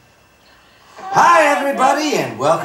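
A young boy talks loudly and excitedly close by.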